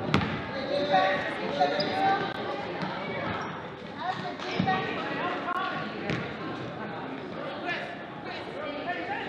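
A crowd of spectators chatters and cheers in an echoing gym.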